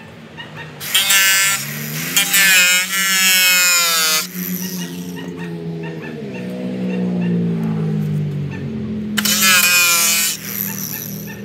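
An angle grinder whines loudly as it grinds metal, its pitch rising and falling.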